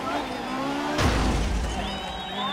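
A car thuds hard into something.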